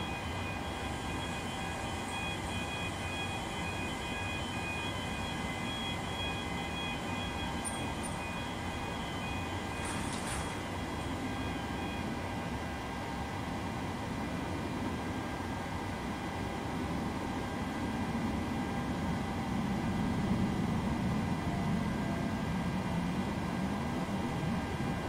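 Jet engines roar steadily in the background.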